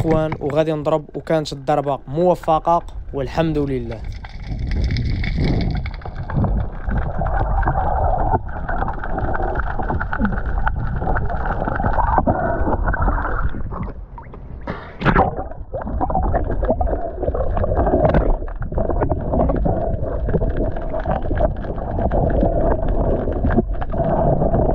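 Water rumbles and swishes in a muffled underwater hush.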